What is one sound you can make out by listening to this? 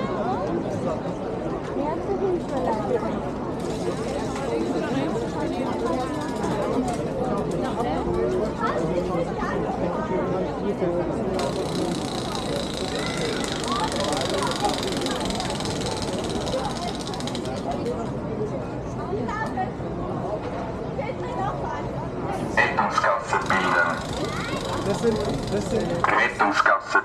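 A crowd of people chatters outdoors in a wide open space.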